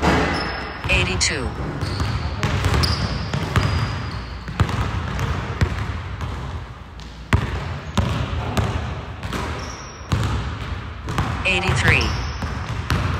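Sneakers squeak on the gym floor.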